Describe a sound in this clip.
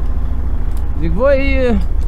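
A ratchet strap clicks as it is worked by hand.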